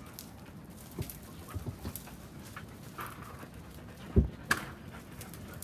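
A dog rustles through dry brush.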